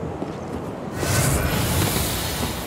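Fire roars and crackles close by.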